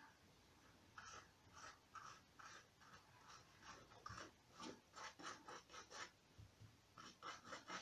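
A paintbrush dabs and brushes on crumpled paper.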